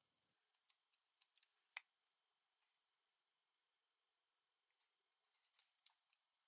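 A craft knife scrapes and clicks against paper.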